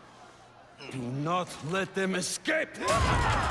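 A deep-voiced man speaks with a menacing growl.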